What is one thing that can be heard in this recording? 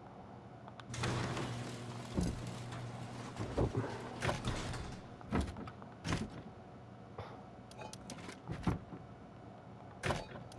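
A wooden door bangs open and shut.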